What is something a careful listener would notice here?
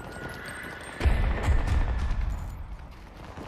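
An explosion booms nearby with a deep rumble.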